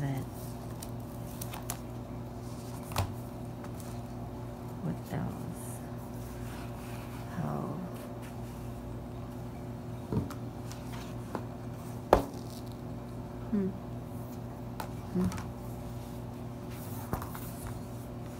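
A tablet case snaps and clicks as hands fit it on.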